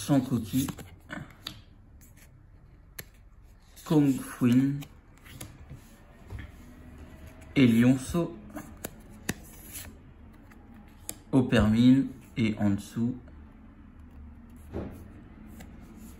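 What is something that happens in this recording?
Trading cards slide and rustle as hands shuffle through them.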